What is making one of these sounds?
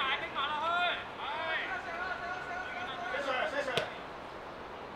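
Men shout to each other during a football game.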